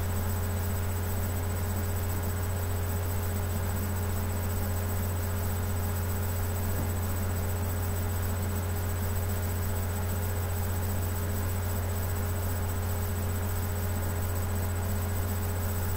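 Music plays from a small tablet loudspeaker.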